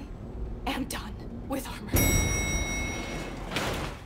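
A metal lift gate rattles and clanks shut.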